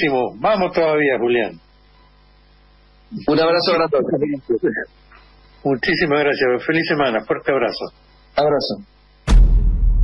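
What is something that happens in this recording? A man speaks calmly into a microphone, heard as a radio broadcast.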